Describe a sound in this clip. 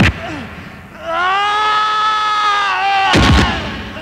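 A man cries out loudly in pain.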